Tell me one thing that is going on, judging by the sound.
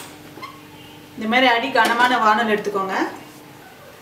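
A metal pan is set down on a gas burner with a clunk.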